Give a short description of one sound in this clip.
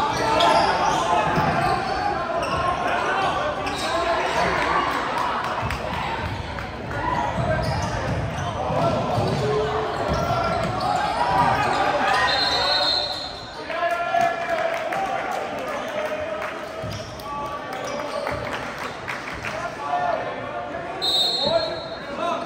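A crowd of spectators murmurs and cheers in a large echoing gym.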